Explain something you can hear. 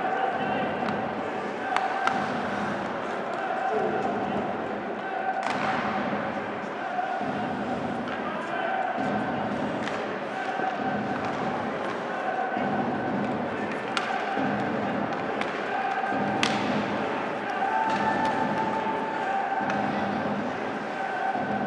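Ice skates scrape and hiss across the ice in a large echoing arena.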